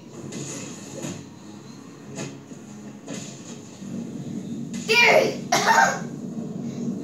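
Heavy punches and kicks thud in a fight game, heard through a television speaker.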